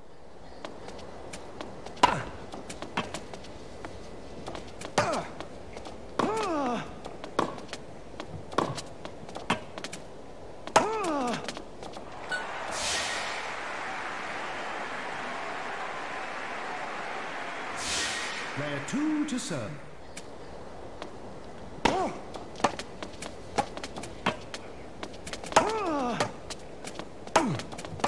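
A tennis racket hits a ball.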